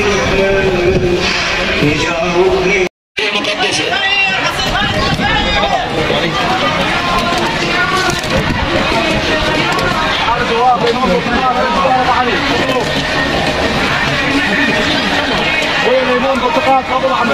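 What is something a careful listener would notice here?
A crowd of men and women talk all around.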